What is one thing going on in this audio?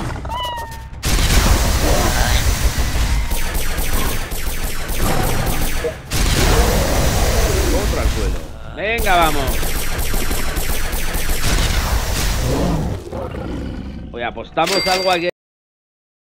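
Gunshots and blows clatter in a fast, noisy fight.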